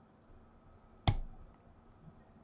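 A short electronic chime sounds as a message window pops up.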